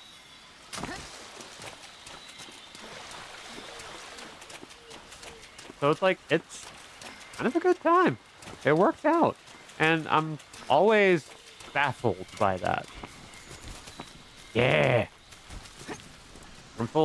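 Footsteps rustle through dense foliage.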